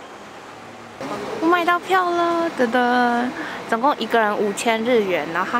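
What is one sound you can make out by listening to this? A young woman speaks close up with animation.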